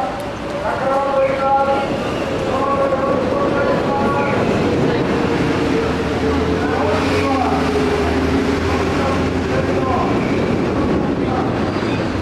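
Many footsteps shuffle on a hard floor.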